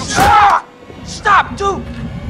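A young man shouts urgently and repeatedly.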